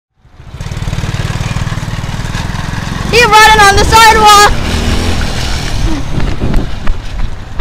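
A small quad bike engine putters and drives away.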